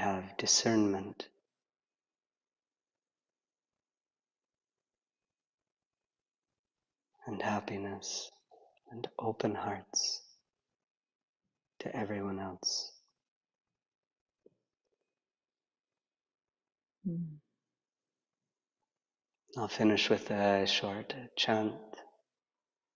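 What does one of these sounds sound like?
A man speaks calmly and slowly over an online call, pausing between phrases.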